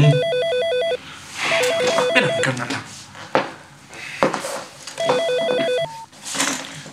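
A telephone rings in short repeated bursts.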